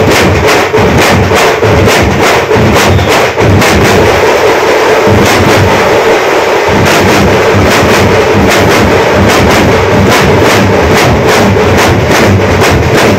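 A large group of drummers beats loud, fast drums in a steady rhythm.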